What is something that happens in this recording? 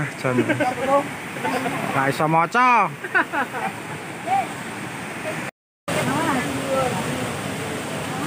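A waterfall rushes far off.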